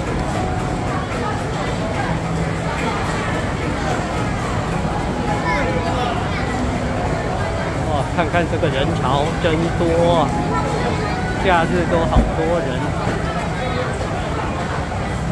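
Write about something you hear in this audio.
A crowd of people chatters all around in a busy, echoing hall.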